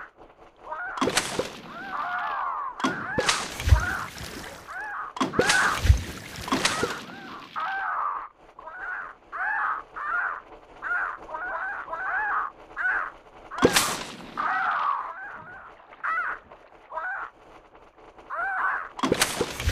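A video game's cartoon sound effects pop and thud as shots hit.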